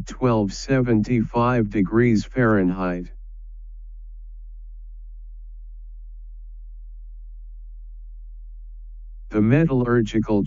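A man speaks calmly and clearly into a microphone, as if giving a lecture.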